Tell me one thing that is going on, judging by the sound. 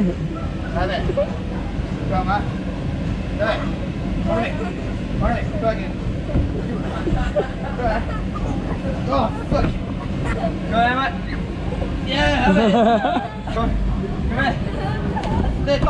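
Young men shout and laugh playfully nearby.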